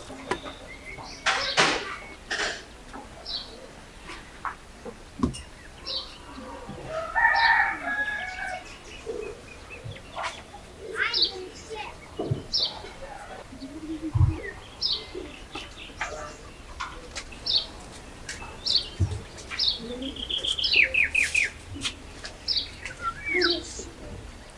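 A knife scrapes and shaves the skin off a cucumber in short, quick strokes.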